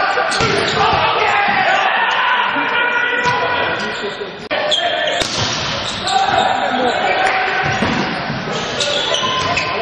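A volleyball is struck hard in a large echoing hall.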